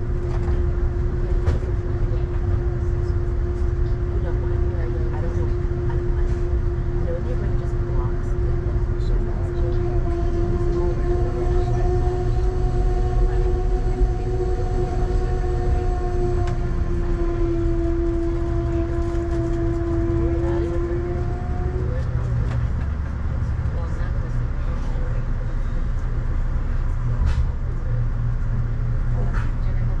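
A car drives along with a steady low road rumble.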